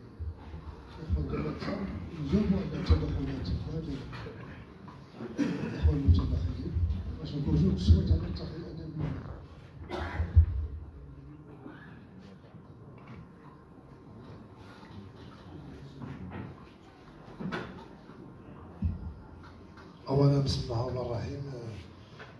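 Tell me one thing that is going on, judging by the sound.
A man speaks into a microphone in a room that echoes a little.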